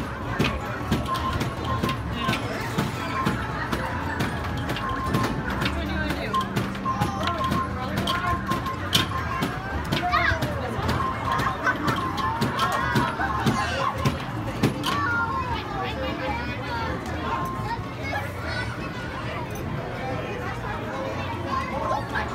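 An arcade game plays electronic music and beeps throughout.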